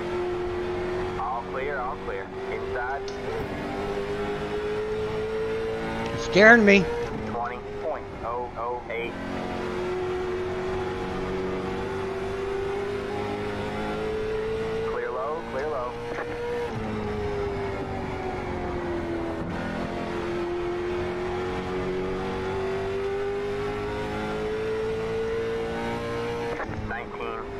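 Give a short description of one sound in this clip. A racing car engine drones steadily, its pitch slowly rising and falling.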